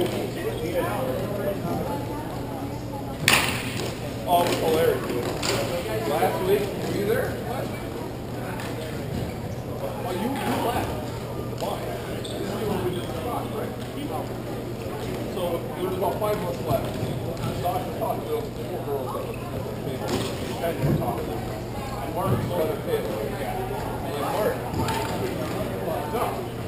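Hockey sticks clack against a ball and each other in a large echoing hall.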